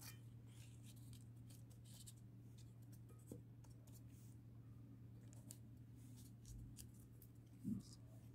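Plastic sheeting crinkles softly as a hand presses it into a metal pot.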